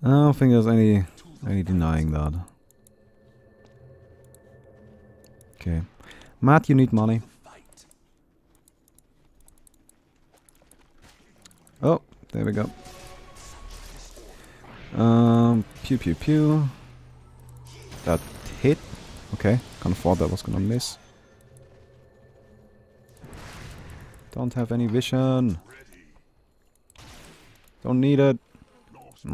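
A young man talks with animation into a close microphone, in short bursts.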